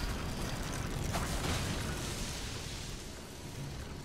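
A sword slashes and clangs in a fight.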